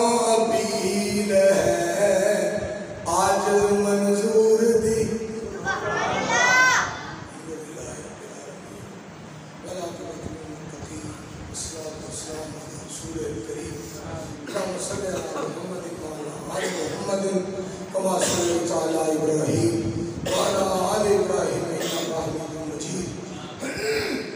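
A man sings a slow, melodic chant into a microphone, heard through a loudspeaker with echo.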